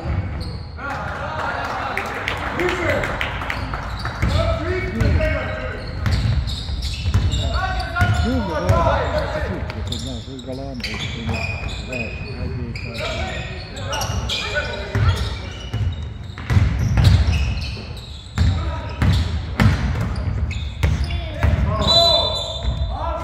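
Young players shout across a large echoing gym.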